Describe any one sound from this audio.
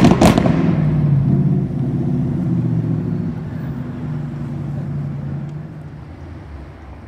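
A sports car engine rumbles loudly as the car pulls away.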